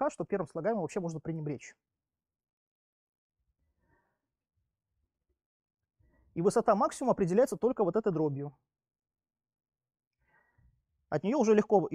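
A man lectures with animation, in short bursts with pauses.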